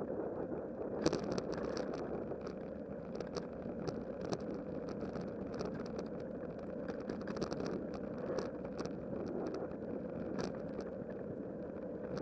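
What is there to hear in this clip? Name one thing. A bicycle rattles and clicks over cracks in the path.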